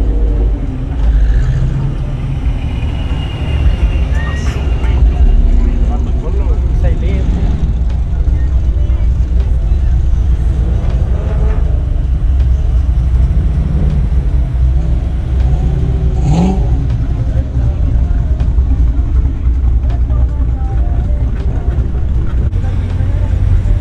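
Car engines rumble loudly as cars roll slowly past one after another.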